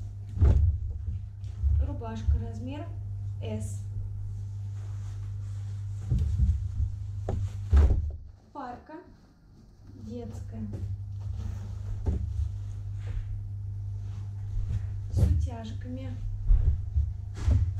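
Fabric rustles as hands handle and smooth clothing.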